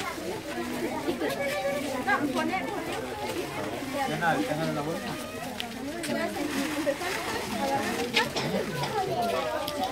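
Many children chatter and call out close by, outdoors.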